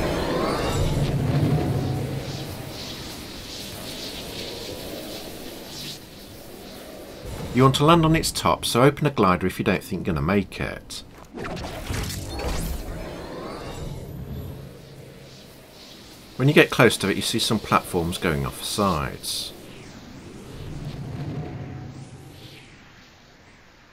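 Wind rushes steadily during a glide through the air.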